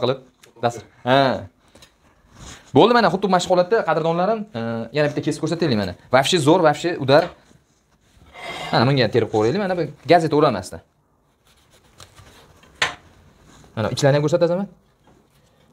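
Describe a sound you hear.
A man talks with animation, close to the microphone.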